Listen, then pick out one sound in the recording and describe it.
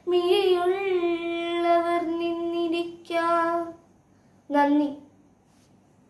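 A young girl sings in a clear, steady voice, close by.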